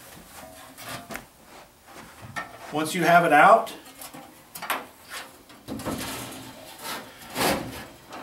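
A metal blower housing scrapes and clunks as it is lifted out.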